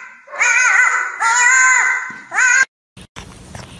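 A dog yelps and whines in high, rising cries.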